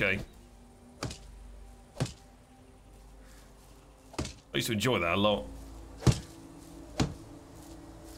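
A wooden hammer knocks on wood.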